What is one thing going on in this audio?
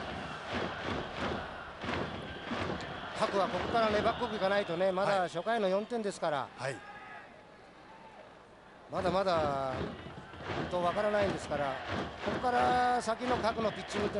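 A stadium crowd cheers and murmurs.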